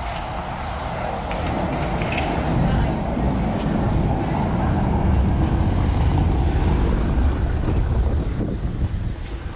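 A van's engine rumbles as it rolls slowly past on cobblestones.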